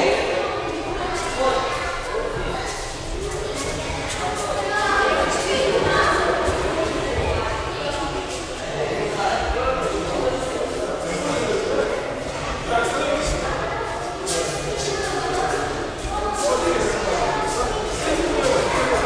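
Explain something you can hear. Many people talk and call out at once in a large echoing hall.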